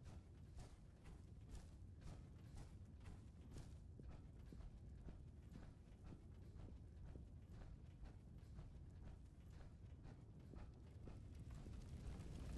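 Heavy footsteps thud steadily on hard ground.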